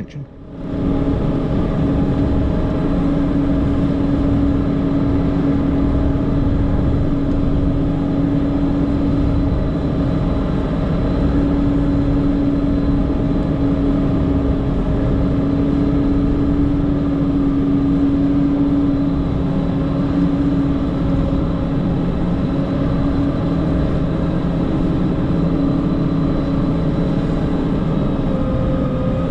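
A heavy diesel engine drones steadily from inside a cab.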